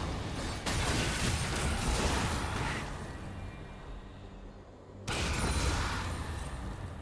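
Game spell effects burst and whoosh loudly.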